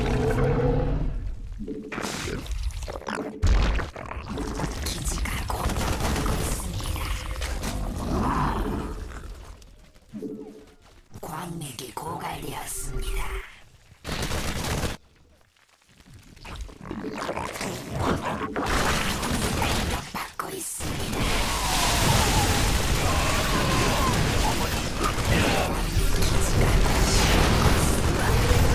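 Video game battle effects clash and rumble.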